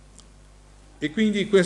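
A middle-aged man speaks calmly into a microphone, heard through a loudspeaker in a hall.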